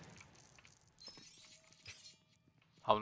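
Small coins jingle and clink as they scatter.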